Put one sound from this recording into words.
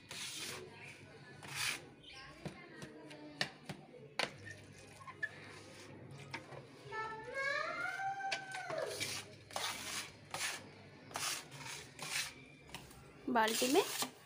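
A trowel scrapes and taps against wet mortar on a hard floor.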